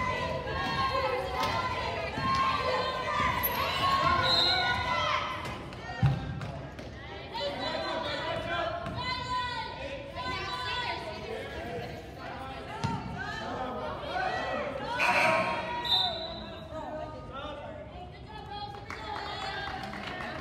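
A crowd of spectators chatters in an echoing gym.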